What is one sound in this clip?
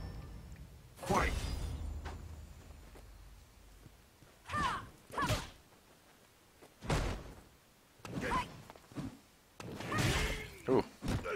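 Game fighting effects whoosh and thud in short bursts.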